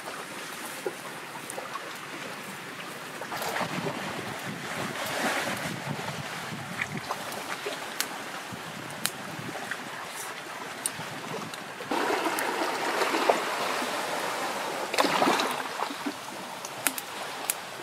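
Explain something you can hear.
A hatchet knocks against shells.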